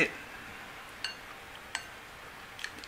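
Chopsticks click against a ceramic bowl.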